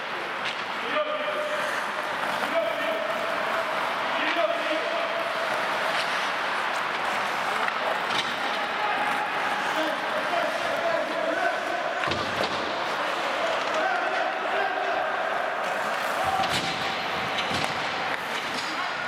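Men shout to one another in the distance across the rink.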